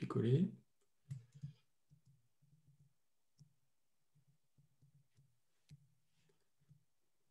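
A man speaks calmly through a microphone, in short phrases.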